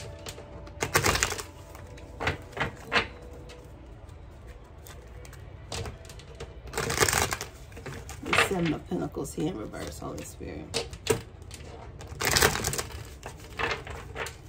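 Playing cards are shuffled with quick, papery riffles.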